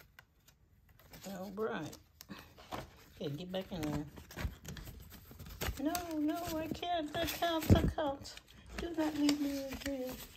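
A plastic sleeve crinkles as it is opened and filled.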